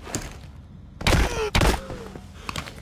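A heavy crate thuds open with a loud clatter.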